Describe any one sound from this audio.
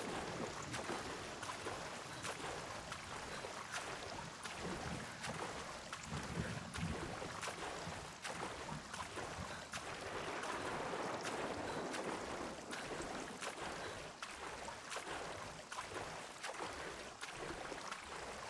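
Water splashes with each swimming stroke.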